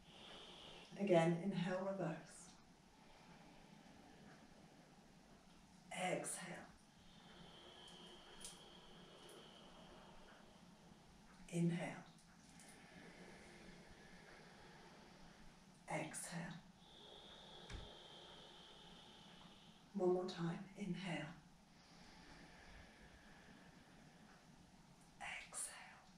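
A woman speaks calmly in short phrases nearby.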